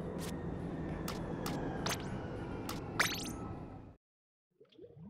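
Game menu music plays.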